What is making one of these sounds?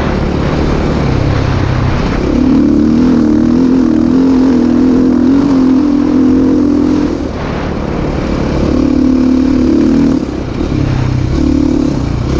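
A dirt bike engine roars up close, rising and falling in pitch as the rider shifts and throttles.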